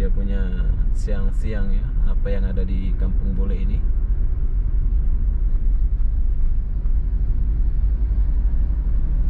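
A car engine hums steadily with road rumble from inside the car.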